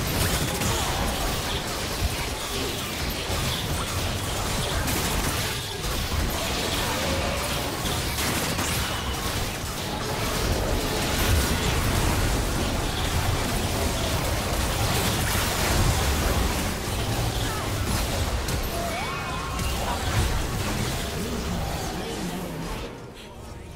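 Magic blasts crackle and boom in a busy fantasy battle.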